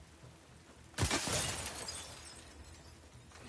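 Glass shatters and tinkles.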